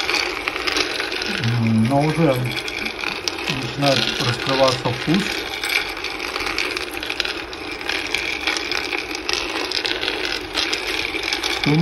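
Cocoa beans rattle and tumble in a turning metal pan.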